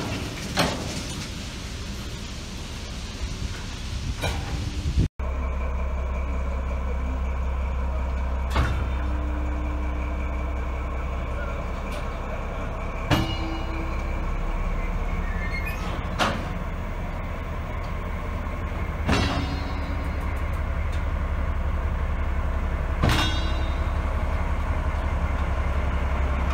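Freight wagons roll past on the rails with a steady rumble.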